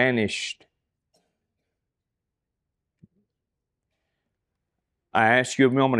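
A man speaks with animation into a microphone, with pauses.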